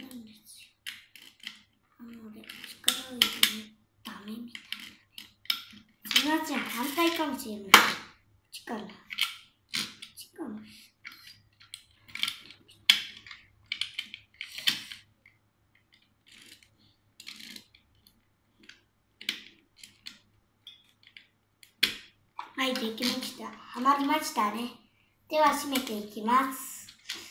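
Small plastic parts click and rattle as a toy is handled.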